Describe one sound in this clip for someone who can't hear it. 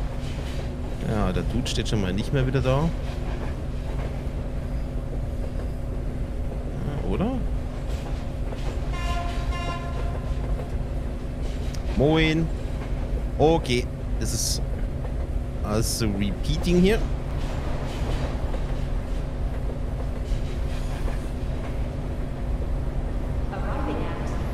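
A subway train rumbles through a tunnel.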